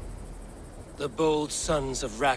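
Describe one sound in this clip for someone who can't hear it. A second man speaks calmly in a low, rough voice.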